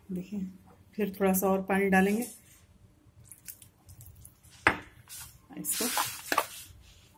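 Hands knead and squeeze crumbly dough in a bowl.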